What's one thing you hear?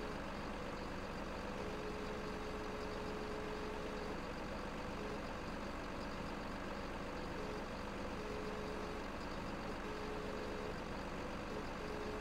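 A hydraulic crane whines steadily as it moves a log.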